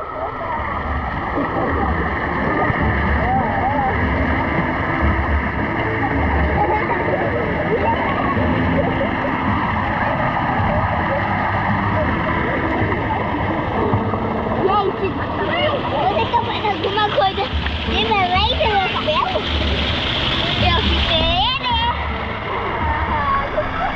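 Water splashes steadily from a fountain into a pool.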